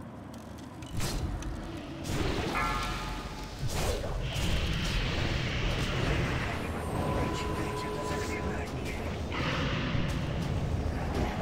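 Heavy blows and roars of a huge beast rumble loudly.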